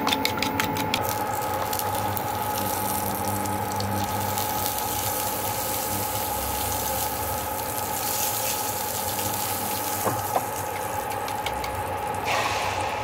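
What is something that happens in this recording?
Butter sizzles and hisses in a hot pan.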